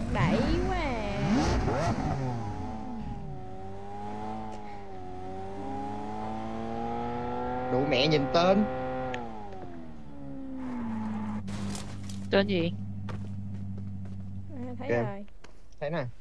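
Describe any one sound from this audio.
A car engine revs and hums, rising and falling in pitch.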